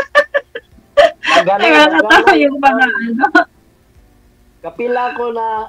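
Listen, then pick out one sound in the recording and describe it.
A woman laughs softly over an online call.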